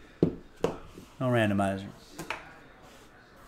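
Cards tap and click as a hand handles them.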